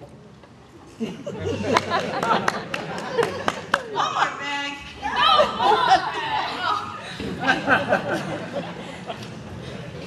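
A string band of fiddles, guitar and double bass plays a lively tune.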